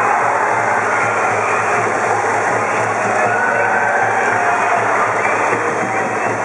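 A large crowd in a stadium cheers and chants loudly in unison.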